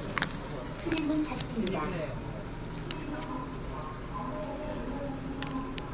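A paper sheet rustles as it is laid down.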